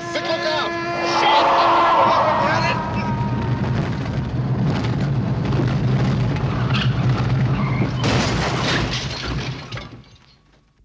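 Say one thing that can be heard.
A car engine hums as a car drives closer.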